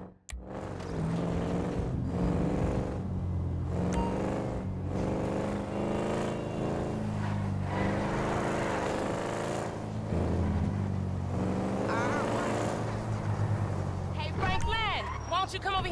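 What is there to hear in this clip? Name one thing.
A car engine hums as a car drives along a street.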